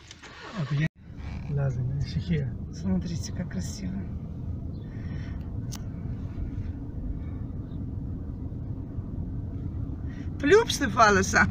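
A car engine hums steadily, heard from inside the car as it drives.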